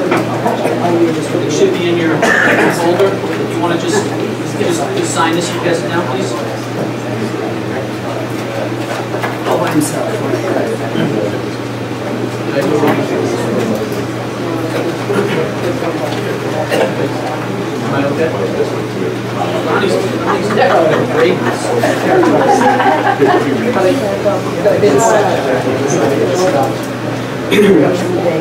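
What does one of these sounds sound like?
A man speaks calmly into a microphone in a room with a slight echo.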